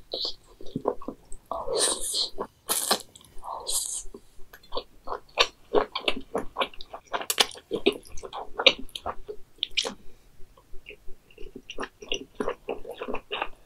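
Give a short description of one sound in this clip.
A young woman slurps noodles loudly, close to a microphone.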